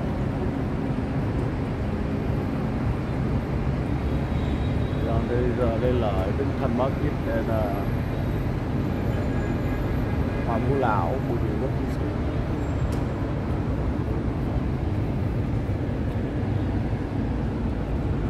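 City traffic hums and rumbles steadily in the distance below.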